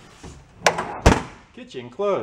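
A metal engine lid slams shut.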